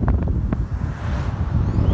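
A car drives past in the opposite direction.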